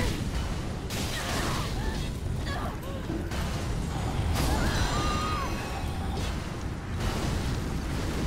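Fire roars in bursts.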